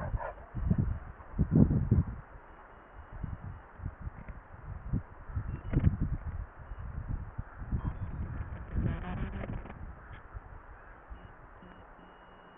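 Wind buffets the microphone outdoors in low rumbling gusts.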